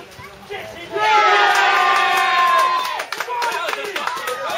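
A man cheers and yells excitedly.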